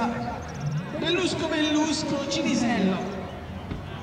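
A crowd of men and women chats outdoors nearby.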